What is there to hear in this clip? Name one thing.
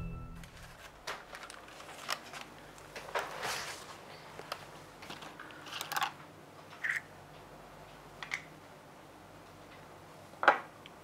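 Plastic bags and small packets rustle and click as they are handled.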